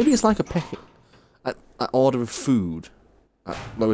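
A wooden door creaks slowly open.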